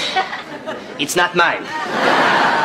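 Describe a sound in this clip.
A young woman speaks flatly.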